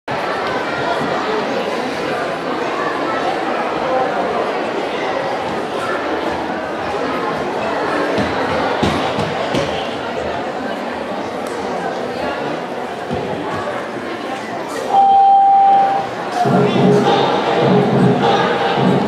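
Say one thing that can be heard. An audience murmurs and chatters softly in a large echoing hall.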